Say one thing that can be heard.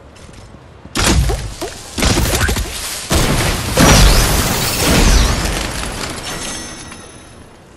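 Game sound effects clang and whoosh loudly.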